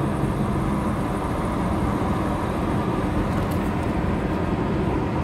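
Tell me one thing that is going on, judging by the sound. A car engine hums steadily from inside the moving car, with road rumble.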